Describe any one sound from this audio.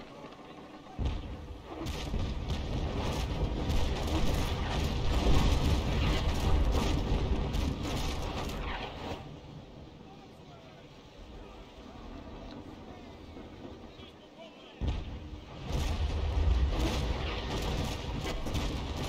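Cannons boom and rumble in heavy volleys.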